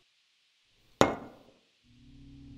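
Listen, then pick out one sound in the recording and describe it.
A glass bottle is set down on a hard counter with a clunk.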